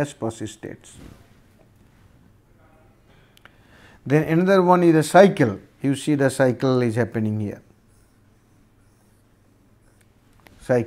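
An older man lectures calmly into a close microphone, pausing between phrases.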